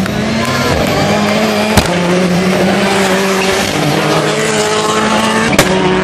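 Tyres skid and scrabble on wet tarmac.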